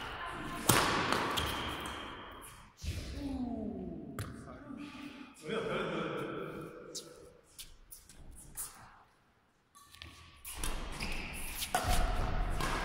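Paddles knock against a ball in a large echoing hall.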